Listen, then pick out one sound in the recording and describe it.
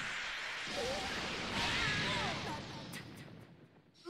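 A heavy explosion booms.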